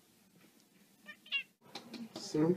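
A cat meows up close.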